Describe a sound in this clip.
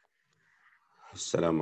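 A middle-aged man begins to speak calmly into a close microphone.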